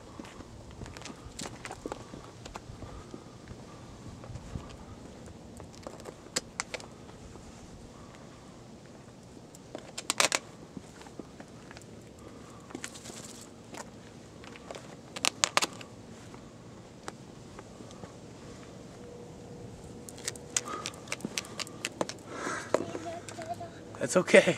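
A plastic container scrapes and knocks on pavement as an animal pushes it along.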